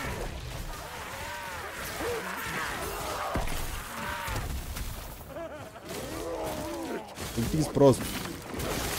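Fantasy battle sound effects whoosh, clash and ring out.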